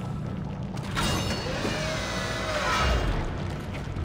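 A heavy metal door slides open with a mechanical hiss and whir.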